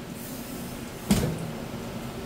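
A fish thuds down onto a cutting board.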